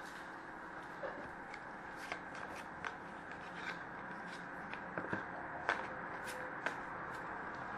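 Cards tap and click against each other.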